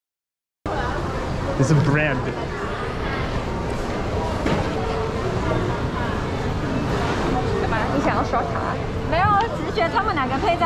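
Many people chatter in a busy, echoing indoor hall.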